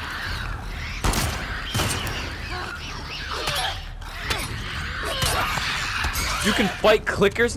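Heavy blows thud in a struggle.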